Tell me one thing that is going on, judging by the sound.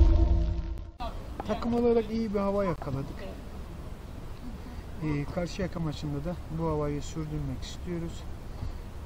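A man speaks calmly and close by, outdoors.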